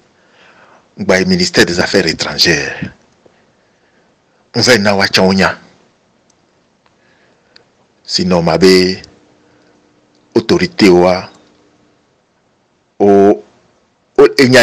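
A man speaks close into a microphone in short, animated bursts with pauses between them.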